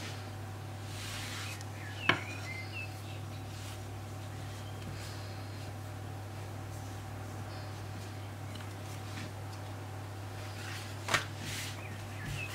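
Hands softly rustle and press soft dough.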